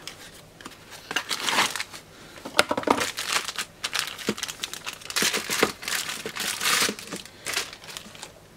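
A plastic bag crinkles and rustles as it is unwrapped.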